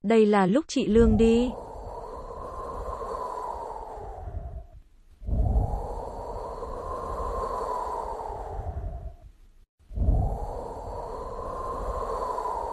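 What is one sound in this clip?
A jet plane roars past, swelling and fading again and again.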